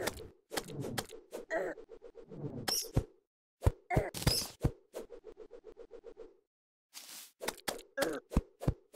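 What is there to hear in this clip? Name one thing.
Fiery spells whoosh and crackle as they are cast.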